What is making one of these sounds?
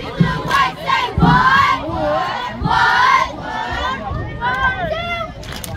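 Young girls clap their hands in rhythm.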